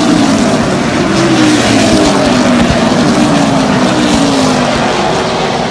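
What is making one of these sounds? A race car engine drops in pitch as it passes by.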